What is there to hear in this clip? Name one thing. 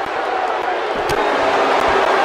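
A heavy body slams down onto a wrestling mat with a thud.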